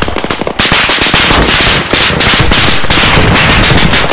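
A rifle shot cracks.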